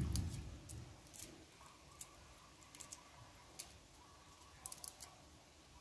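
Hands peel garlic with soft crackles.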